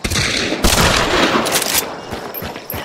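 A rifle shot booms and echoes outdoors.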